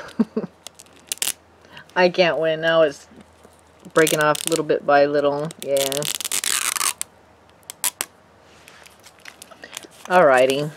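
Plastic wrapping crinkles and tears as hands peel it open.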